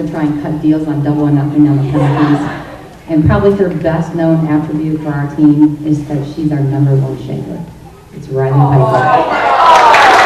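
A middle-aged woman speaks calmly into a microphone, heard through a loudspeaker in an echoing hall.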